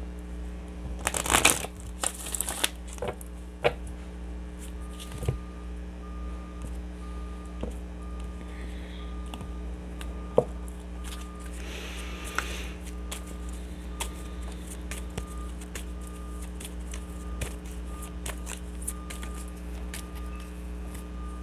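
Cards shuffle and riffle in hands.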